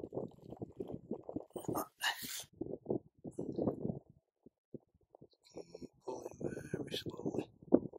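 A finger scrapes softly through wet sand.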